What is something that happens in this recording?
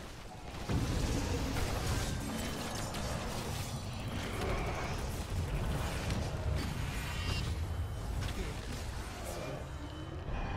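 Game spell effects whoosh and crash.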